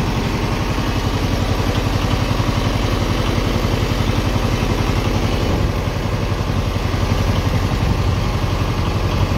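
A boat engine chugs steadily.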